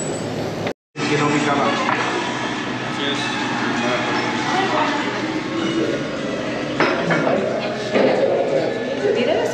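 Cutlery clinks on plates.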